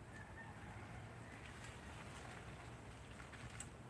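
A plastic tarp rustles as it is pulled.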